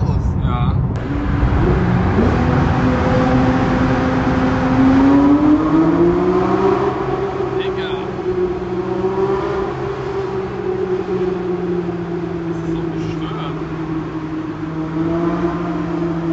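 A car engine roars and revs up, echoing in a tunnel.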